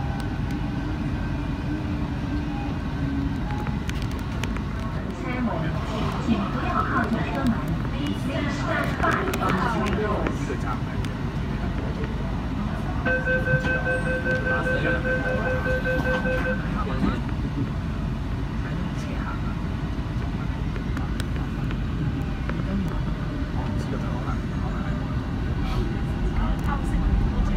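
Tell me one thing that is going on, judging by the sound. A train rumbles steadily through a tunnel.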